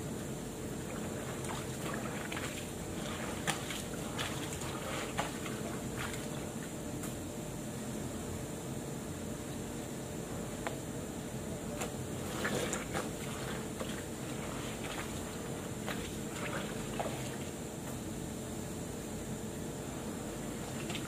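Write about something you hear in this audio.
Wet clothes slosh and splash in water as they are scrubbed by hand.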